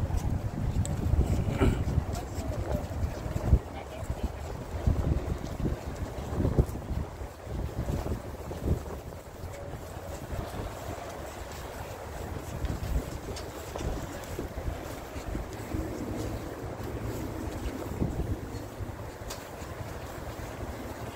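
A wheeled cart rolls along pavement.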